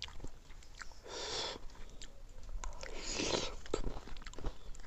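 A man and a woman chew and slurp food loudly, close up.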